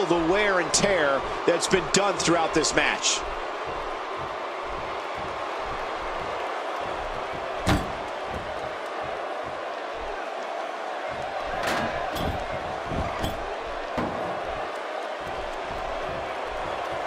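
A large crowd cheers and murmurs steadily in a big echoing arena.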